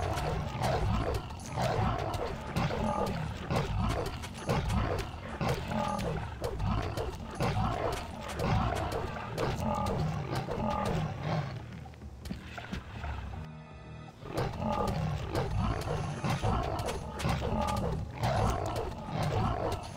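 A sword swings and strikes repeatedly.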